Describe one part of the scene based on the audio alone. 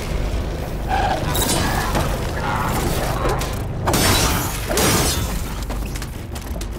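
Heavy metal blows and crashes ring out during a fight.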